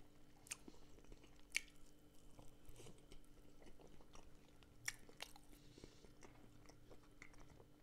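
A man chews food with his mouth close to a microphone.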